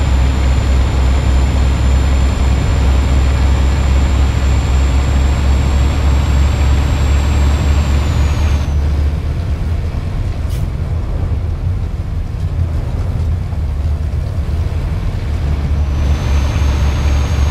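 A heavy truck engine rumbles low and steady.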